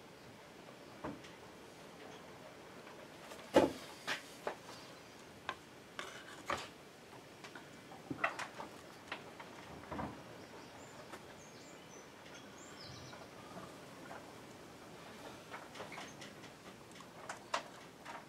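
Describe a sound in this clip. Small objects tap and knock on a wooden bench.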